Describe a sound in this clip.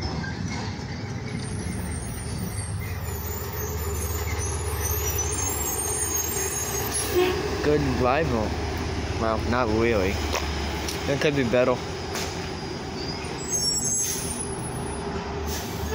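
A bus engine rumbles as the bus pulls up and drives slowly past.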